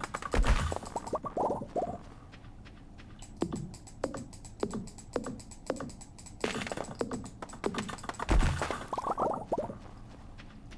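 Wooden pieces clatter and pop onto the ground.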